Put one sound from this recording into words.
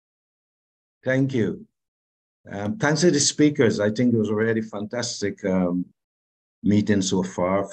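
An elderly man speaks with animation through an online call.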